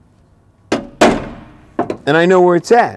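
A man clinks metal tools together.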